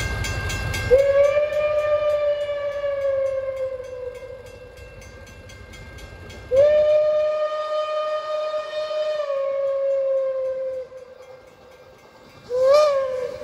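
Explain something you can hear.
A steam locomotive's whistle blows long, loud blasts as it approaches.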